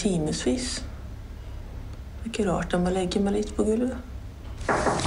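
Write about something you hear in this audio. A young woman speaks slowly and wearily, close by.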